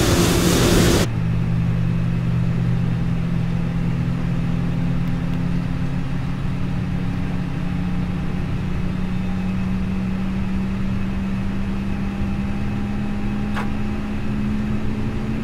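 A steady hum fills an airliner cockpit.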